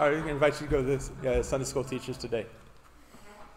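A man speaks into a microphone in an echoing room.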